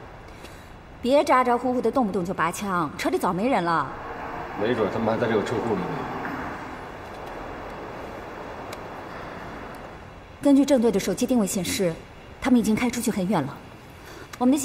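A young woman speaks sharply and close by.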